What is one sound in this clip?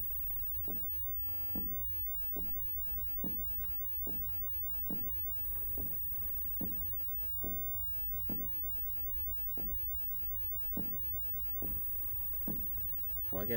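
Footsteps thud slowly and steadily on a hard floor.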